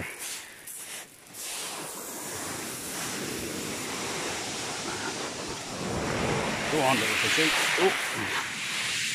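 Waves wash up onto a pebble beach and hiss as they draw back.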